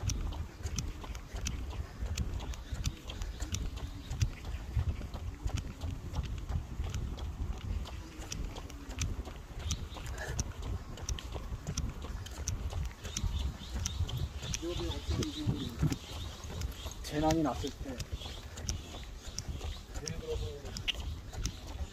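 Footsteps crunch steadily on a path.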